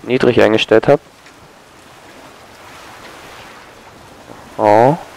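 Rough sea waves churn and splash nearby.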